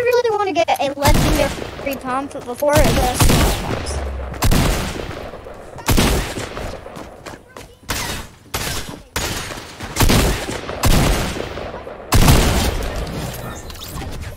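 Guns fire in rapid bursts, with loud sharp bangs.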